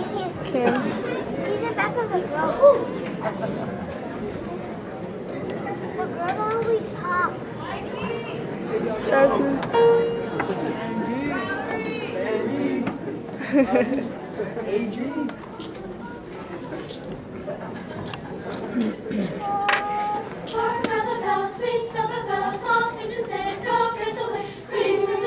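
A choir of young men and women sings together in an echoing hall.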